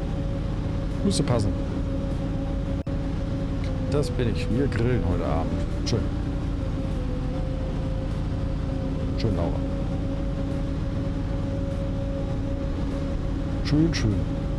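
A young man talks briefly into a close microphone.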